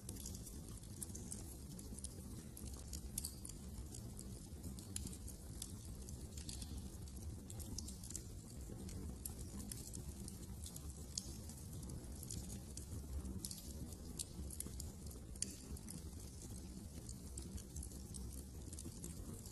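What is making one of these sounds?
A fire crackles and pops steadily nearby.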